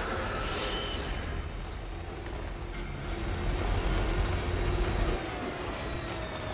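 Tyres crunch over rocky ground.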